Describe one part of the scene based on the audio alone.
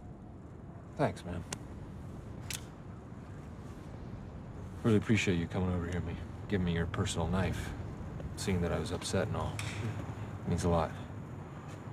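A young man talks softly up close.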